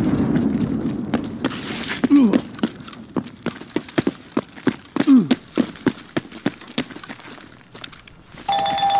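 Footsteps crunch on gravel and debris at a quick pace.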